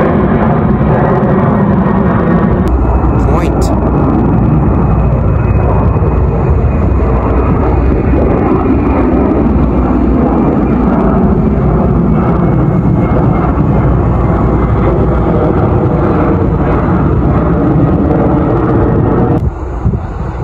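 A jet airliner roars loudly overhead as it passes low, then the roar drops away.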